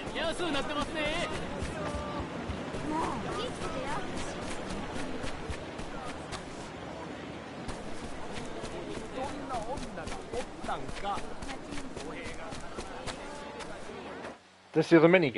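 Footsteps patter quickly on packed dirt.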